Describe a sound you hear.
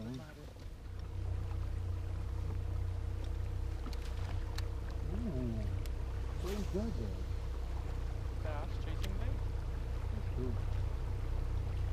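An electric boat motor hums steadily.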